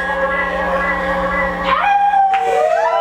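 A young woman sings through a microphone.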